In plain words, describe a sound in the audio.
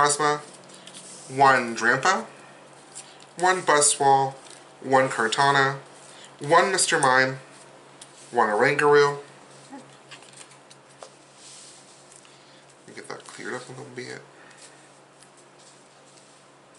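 Playing cards slide and tap softly on a cloth mat.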